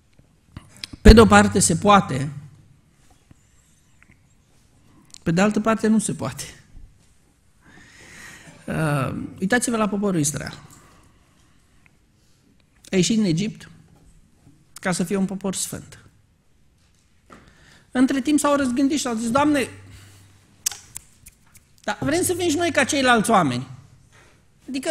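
A man speaks slowly into a microphone, in short phrases with pauses.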